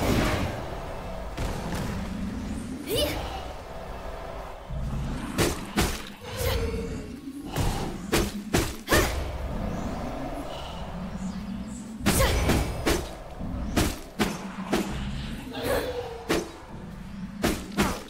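Magic spell blasts whoosh and strike in a video game battle.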